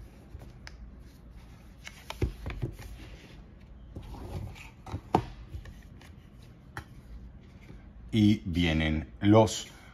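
Cardboard packaging rustles and taps as hands unfold it.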